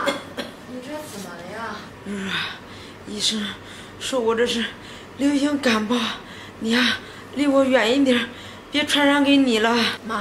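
A middle-aged woman speaks weakly and hoarsely nearby.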